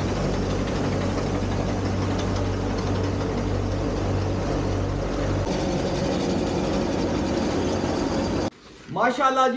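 A tractor engine rumbles steadily outdoors.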